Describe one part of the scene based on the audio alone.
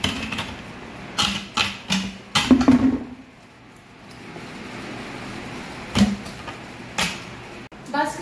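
Ice cubes clink and knock against a plastic jug.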